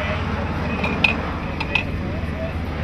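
Metal clanks sharply as rescue workers handle equipment.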